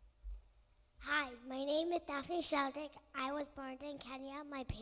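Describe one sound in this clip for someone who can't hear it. A young girl speaks into a microphone through loudspeakers.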